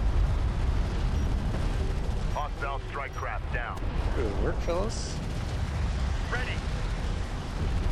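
Explosions and gunfire rumble in a video game.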